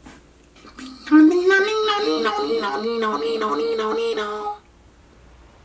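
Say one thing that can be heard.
A woman sings a repeated line in a high, showy voice.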